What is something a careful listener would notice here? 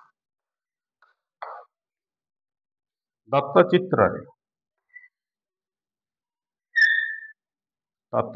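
Chalk squeaks and taps on a chalkboard.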